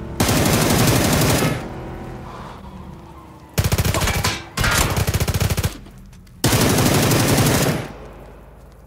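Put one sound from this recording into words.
Automatic gunfire rattles loudly in rapid bursts.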